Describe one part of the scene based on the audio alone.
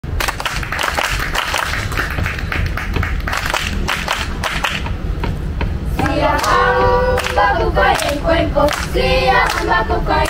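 A group of children claps hands in rhythm.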